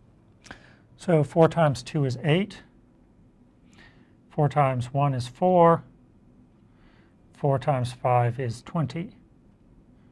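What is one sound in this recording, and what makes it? A man speaks calmly and clearly into a close microphone, in short bursts.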